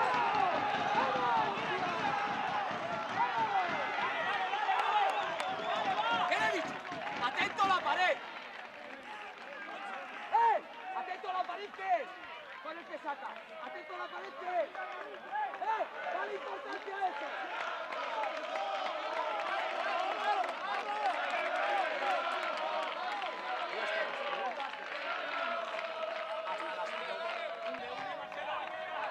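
Young men shout and cheer excitedly outdoors.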